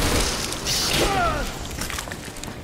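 A man grunts in pain.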